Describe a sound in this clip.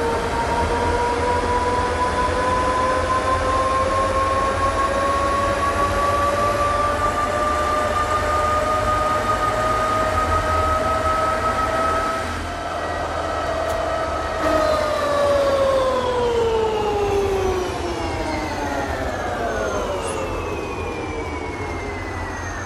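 A bus engine hums and whines, rising in pitch as it speeds up and falling as it slows.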